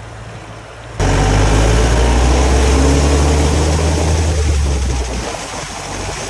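A vehicle engine rumbles up close.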